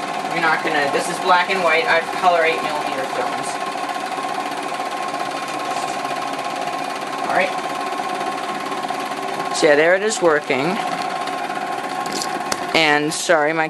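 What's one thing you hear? A film projector whirs and clatters steadily.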